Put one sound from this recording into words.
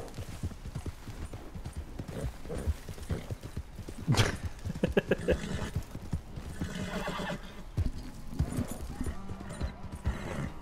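Horse hooves thud steadily on dirt and brush.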